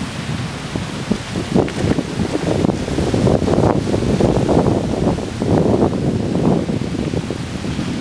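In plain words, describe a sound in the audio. A stream flows and babbles below.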